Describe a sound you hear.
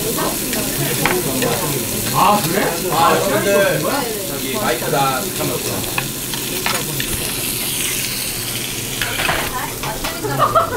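Chopsticks clink against dishes.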